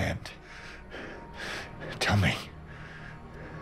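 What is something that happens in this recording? A middle-aged man speaks in a low, tense voice.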